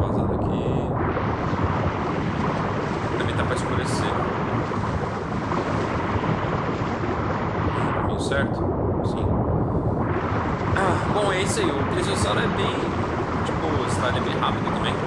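Water splashes and sloshes as a large sea creature swims at the surface.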